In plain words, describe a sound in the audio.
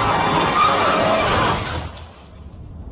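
Car tyres screech loudly as a car skids.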